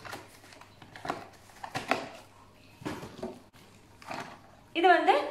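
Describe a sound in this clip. Cardboard rustles and thumps as items are taken from a box.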